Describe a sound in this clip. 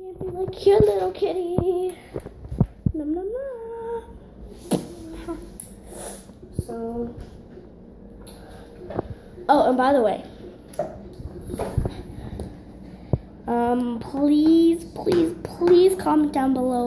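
A young girl talks and sings playfully, close to the microphone.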